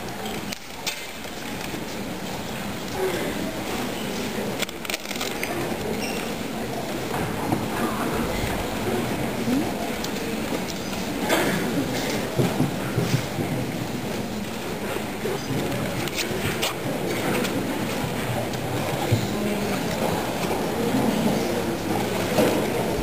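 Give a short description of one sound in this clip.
A crowd of young people chatters and laughs in a large echoing room.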